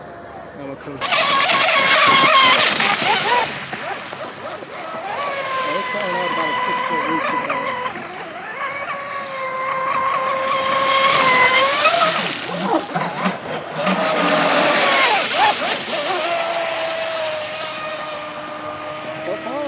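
Water sprays and hisses behind a speeding boat.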